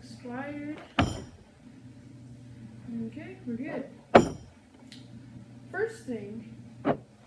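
A glass bottle knocks down onto a table.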